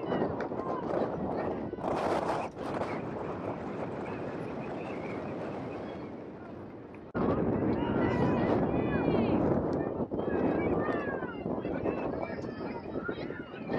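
Young women shout to each other on an open field.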